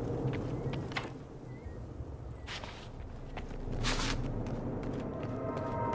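A heavy wooden door swings open.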